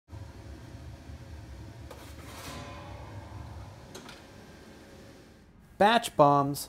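A furnace roars steadily.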